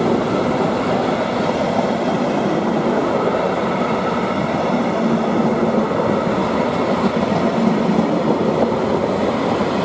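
A long freight train rumbles past on the tracks.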